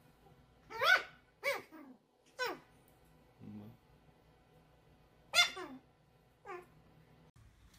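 A puppy yelps with short, high whines.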